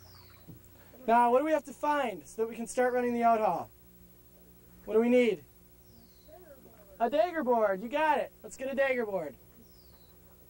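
A young boy speaks into a microphone close by, in short bursts.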